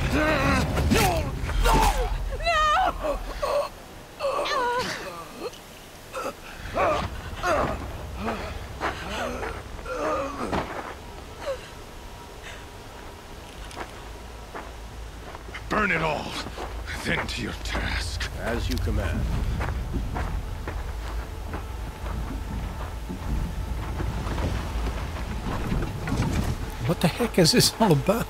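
Wind blows steadily over open snow.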